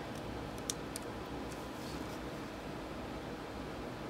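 A charging cable clicks into a phone.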